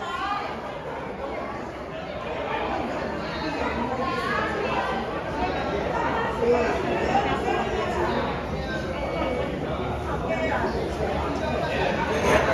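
An elderly man sings into a microphone, heard through loudspeakers in an echoing hall.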